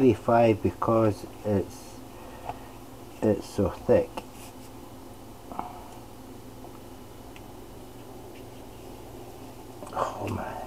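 A knife slices softly through cooked meat.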